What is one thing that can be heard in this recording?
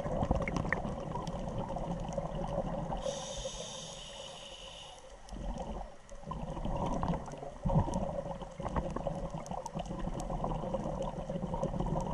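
Scuba bubbles gurgle and rumble loudly underwater.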